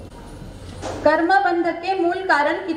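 A woman sings loudly through a loudspeaker.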